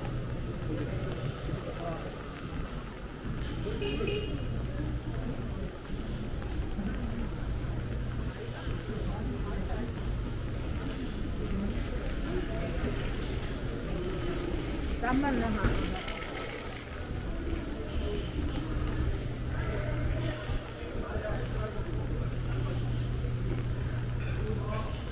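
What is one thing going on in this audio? Rain patters steadily on a wet street outdoors.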